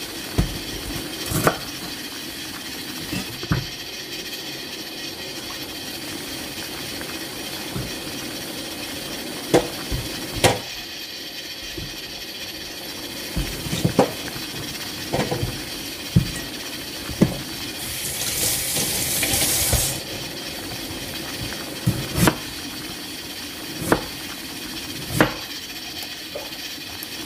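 Water boils and bubbles steadily in a pot.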